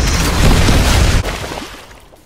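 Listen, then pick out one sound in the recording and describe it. Explosions boom and crackle loudly.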